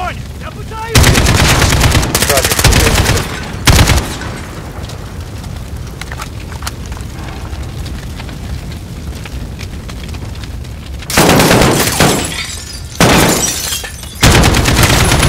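Automatic rifles fire in loud, rapid bursts.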